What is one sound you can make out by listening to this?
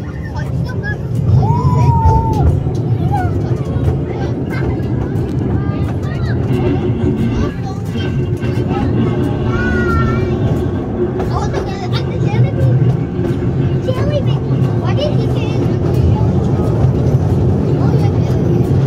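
A small train engine rumbles steadily as it rolls along.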